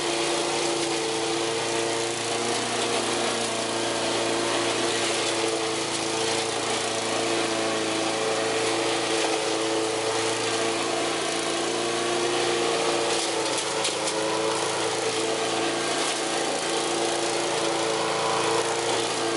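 A lawn mower engine drones steadily nearby outdoors.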